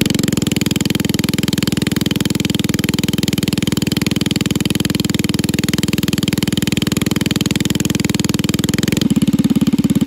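A small engine idles close by with a steady, rapid putter.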